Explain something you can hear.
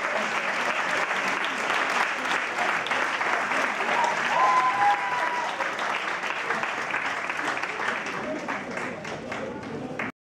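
A crowd chatters and cheers loudly in a large hall.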